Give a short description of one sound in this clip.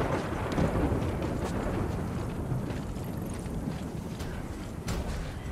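A low wind roars steadily outdoors.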